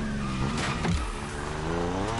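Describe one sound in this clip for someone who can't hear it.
Tyres screech on the road as a car drifts.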